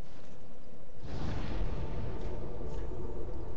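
A fire flares up with a sudden whoosh.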